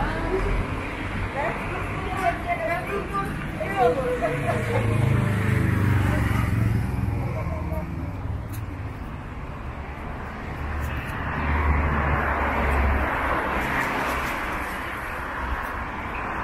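Traffic rumbles along a street outdoors.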